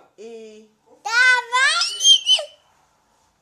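A young boy squeals and laughs loudly.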